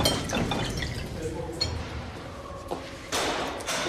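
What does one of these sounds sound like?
Water pours into a glass from a jug.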